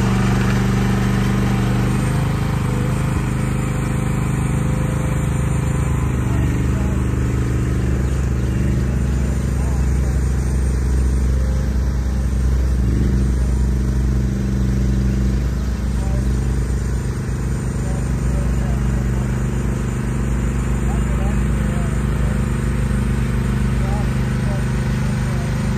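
A small diesel engine rumbles steadily close by, its pitch shifting as it works.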